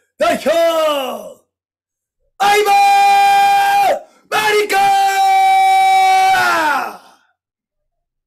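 A young man sings out long, drawn-out calls loudly.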